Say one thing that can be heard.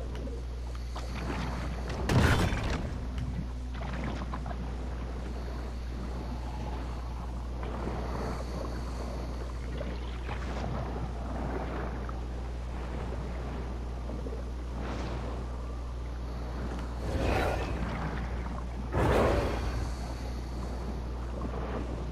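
A deep underwater rumble drones steadily throughout.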